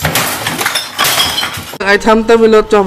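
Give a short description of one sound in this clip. A man smashes objects with loud crashing blows.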